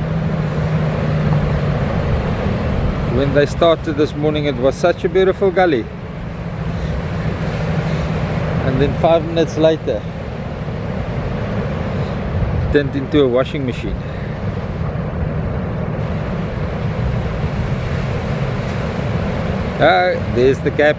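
Waves break and wash in the surf.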